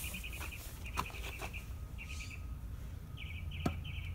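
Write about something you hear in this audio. A metal pipe knocks and scrapes in dry dirt.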